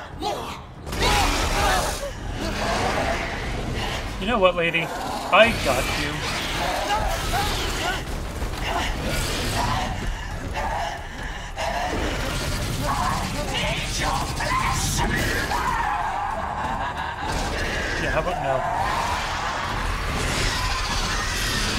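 A giant winged creature roars and screeches.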